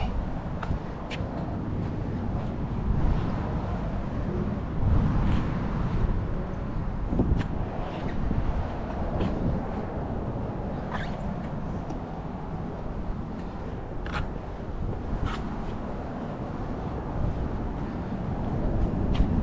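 A microfiber towel rubs and wipes over a truck's painted body.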